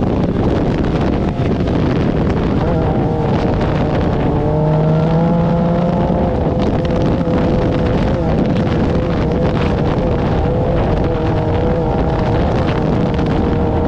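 A dune buggy engine roars loudly up close, rising and falling in pitch.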